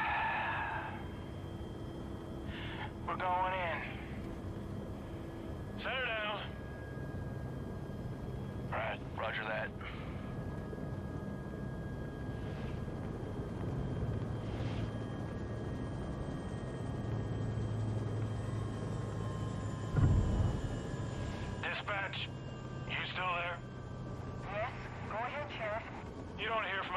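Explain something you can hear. Men speak briefly over radio headsets.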